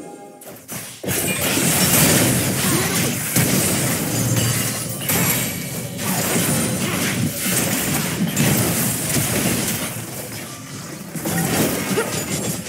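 Magic spells crackle and blast in a fast video game battle.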